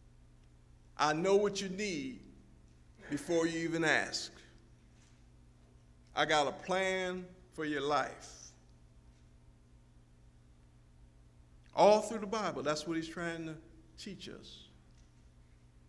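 A man speaks slowly and with emphasis into a microphone, with long pauses.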